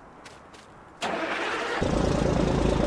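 A truck engine cranks and starts up.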